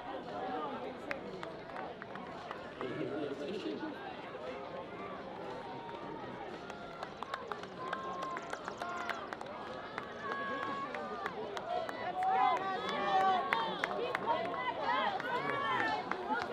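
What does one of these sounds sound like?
A crowd of spectators calls out and cheers outdoors, with many voices that grow louder and more excited.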